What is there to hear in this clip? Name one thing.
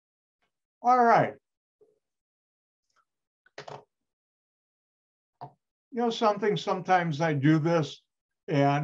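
A middle-aged man speaks calmly through an online call, in short bursts with pauses.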